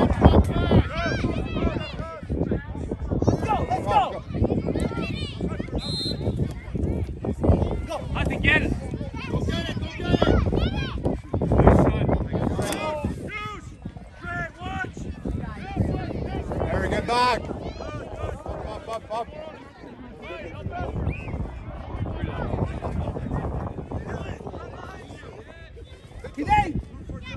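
Children shout and call out to each other outdoors.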